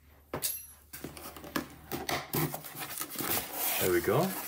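A paper tear strip rips open on a cardboard box.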